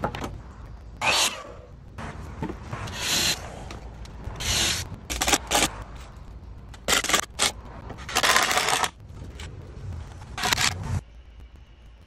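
A cordless drill whirs in short bursts, driving screws into wood.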